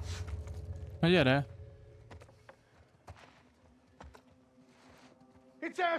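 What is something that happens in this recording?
A man speaks briefly and loudly into a microphone.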